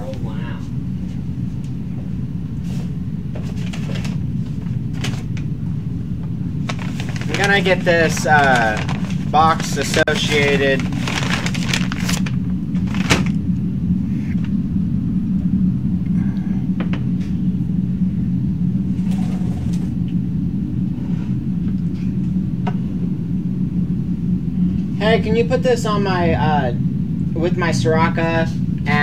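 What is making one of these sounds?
Cardboard rustles and thumps as a box is handled.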